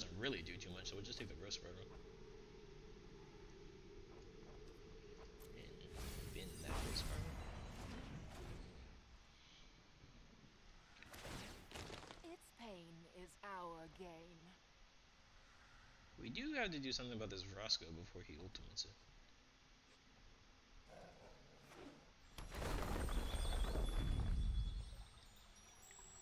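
Game sound effects whoosh and chime.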